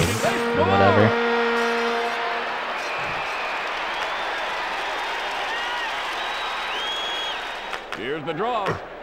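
A crowd cheers in a hockey arena.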